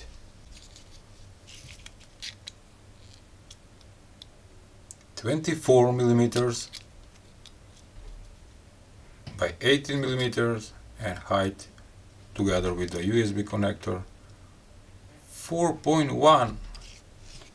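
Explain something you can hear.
Metal caliper jaws slide and click softly.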